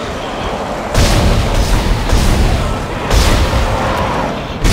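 A weapon fires loud rapid bursts of shots.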